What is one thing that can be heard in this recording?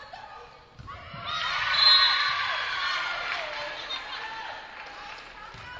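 Young women players cheer loudly after a point.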